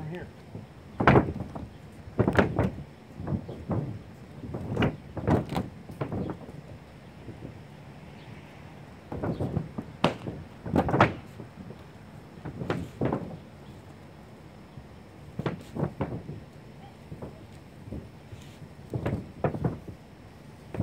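Footsteps thud on a roof.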